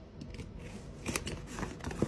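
A utility knife slices through packing tape on a cardboard box.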